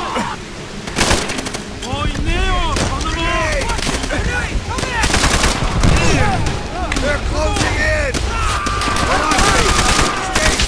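Gunshots crack loudly several times.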